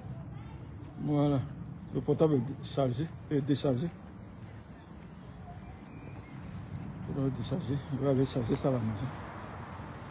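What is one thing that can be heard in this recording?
A man speaks close to the microphone in a calm, friendly voice.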